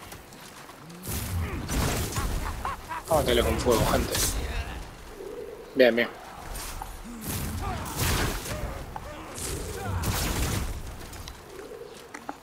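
Fire bursts with loud roaring whooshes, again and again.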